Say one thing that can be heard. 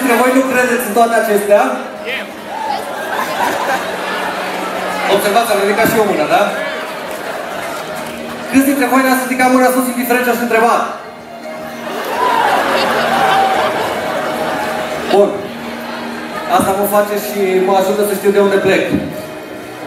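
A man sings into a microphone through loudspeakers in a large echoing hall.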